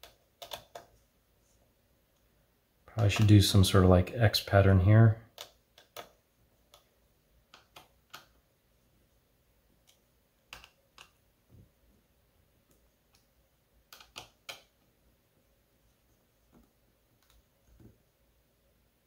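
Small plastic and metal parts click and tap.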